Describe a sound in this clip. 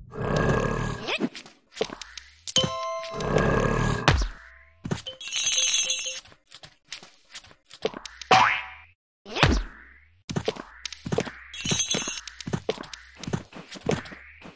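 Cartoon sound effects chime and pop as points are collected.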